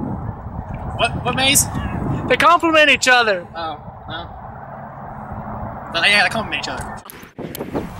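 A young man talks calmly, close by, outdoors.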